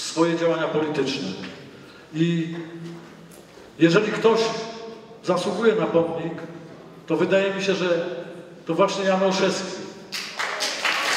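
A man speaks through a microphone with a loudspeaker echo in a large hall.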